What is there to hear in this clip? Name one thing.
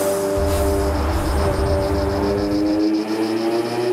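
A trumpet plays a lively tune.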